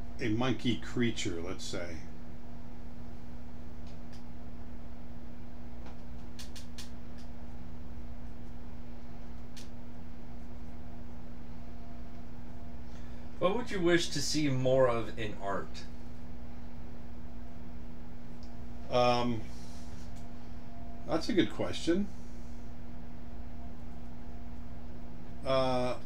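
An older man speaks calmly into a close microphone, in short bursts with pauses.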